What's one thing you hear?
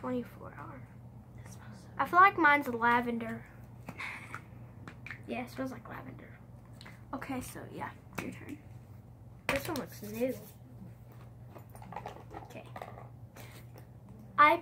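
Two young girls talk with animation close by.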